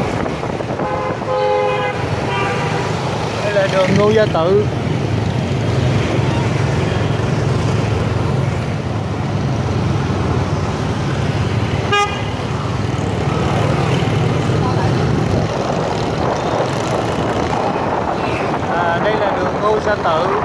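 Motorbike horns beep in short bursts nearby.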